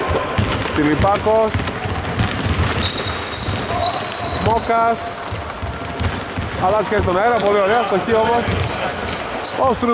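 Sneakers squeak sharply on a wooden court in an echoing hall.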